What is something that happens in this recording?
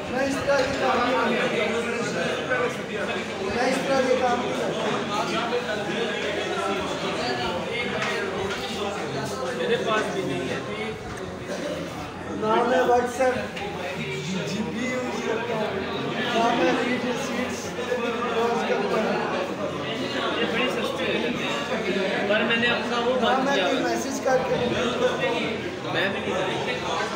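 Young men talk and laugh loudly close by.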